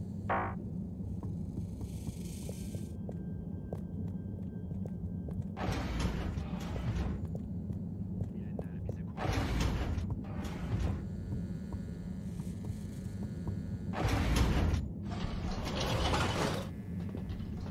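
Footsteps tap on a hard floor and stairs at a walking pace.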